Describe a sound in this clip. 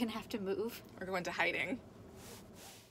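A second young woman laughs close by.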